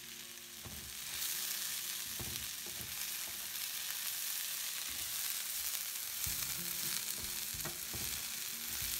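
A wooden spatula stirs and scrapes vegetables in a pan.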